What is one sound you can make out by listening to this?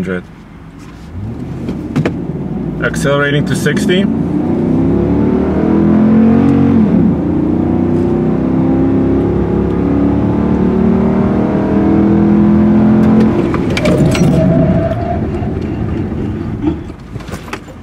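A truck engine roars loudly from inside the cab as the truck speeds up, then eases off.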